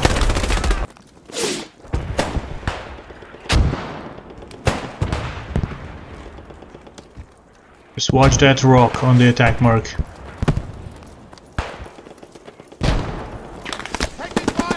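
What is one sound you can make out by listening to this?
Gunshots crack sharply, one at a time, with short echoes.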